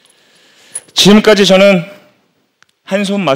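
A young man speaks loudly through a microphone.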